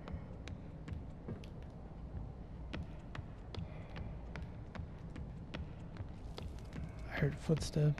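Heavy footsteps thud at a steady walking pace.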